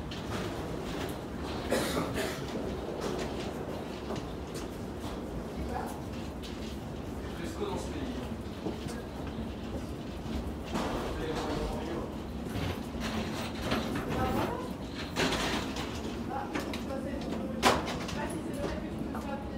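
Suitcase wheels roll and rumble over a floor.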